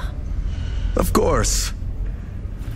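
A man answers briefly and calmly.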